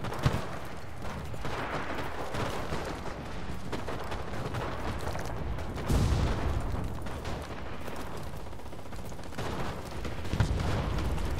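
Footsteps crunch over dirt and gravel.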